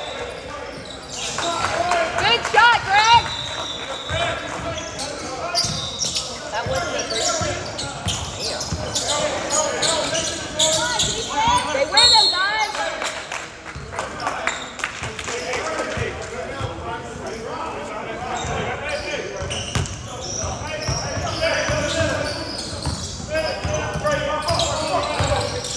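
Young players shout and call out to each other across an echoing gym.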